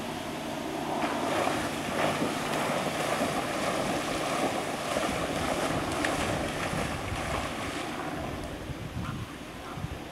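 A dog splashes as it swims fast through water.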